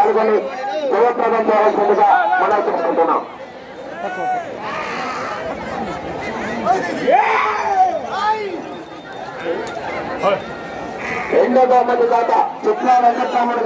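A man speaks loudly and with animation over a loudspeaker.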